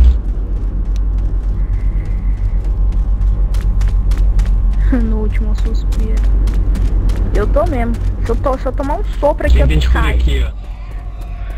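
Footsteps tread quickly across a hard floor.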